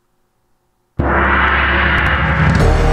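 Upbeat music plays.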